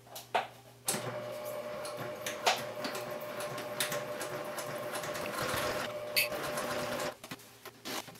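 A sewing machine runs steadily, stitching.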